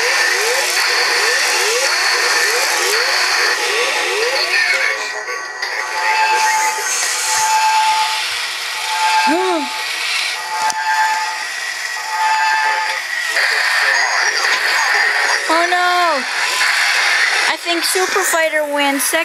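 Toy robots whir and clank as they walk.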